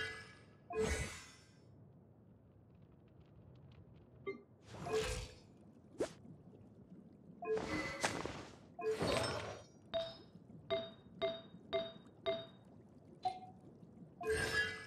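Airy whooshes sweep as menu pages change.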